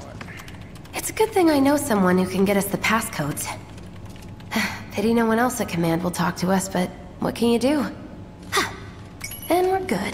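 A young woman speaks brightly through a game's sound.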